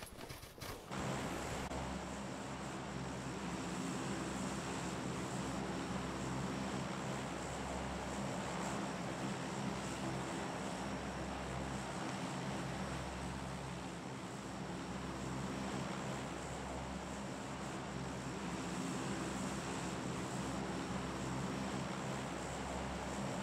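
A large propeller plane's engines drone steadily.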